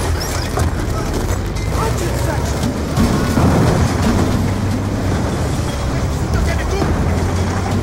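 Explosions boom and crackle nearby.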